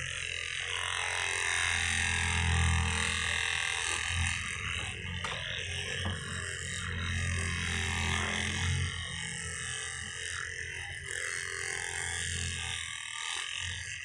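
A massage gun buzzes with a low, steady whirr.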